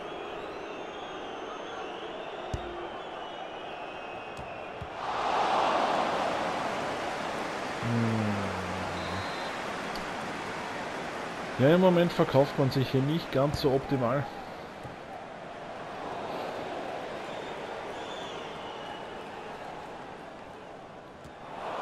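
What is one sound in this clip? A large crowd roars and cheers in a stadium, swelling loudly for a moment.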